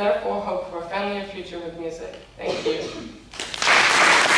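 A young woman speaks into a microphone in a large hall.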